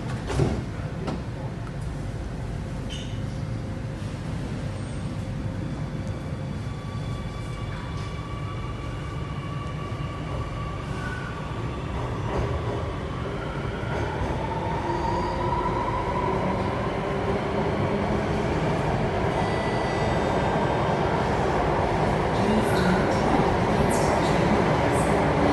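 A train rumbles steadily and picks up speed, growing louder.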